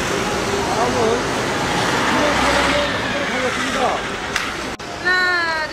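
A man calls out loudly to a group outdoors.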